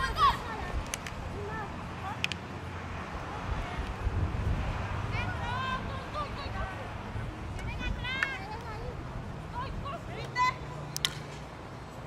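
Hockey sticks clack sharply against a ball outdoors.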